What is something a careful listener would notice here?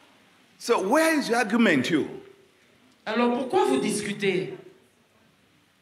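A man preaches with animation into a microphone, heard through loudspeakers in a large room.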